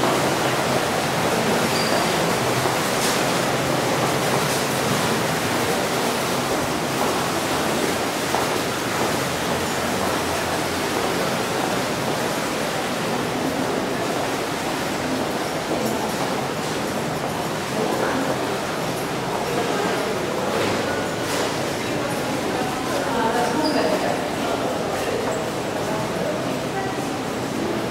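A steady murmur of background noise fills the hall.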